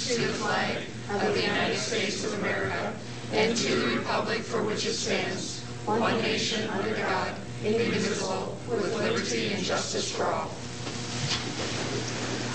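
A group of men and women recite together in unison.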